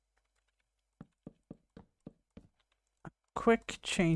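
Wooden blocks are set down with quick, soft knocks.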